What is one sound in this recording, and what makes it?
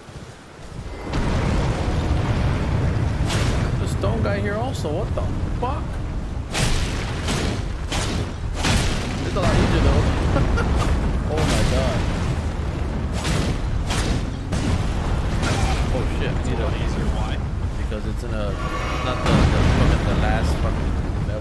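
Heavy crashes and thuds boom as a giant creature stomps and swings.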